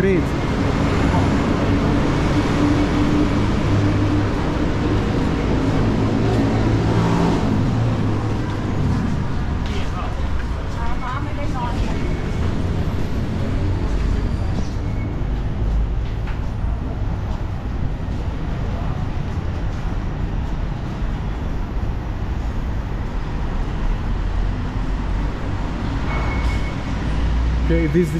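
Footsteps scuff on a hard floor nearby.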